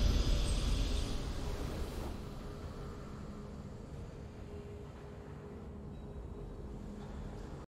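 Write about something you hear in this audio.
A triumphant victory fanfare rings out and slowly fades.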